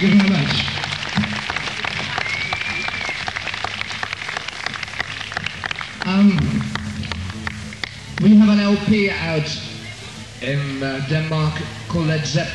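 An electric guitar plays loudly.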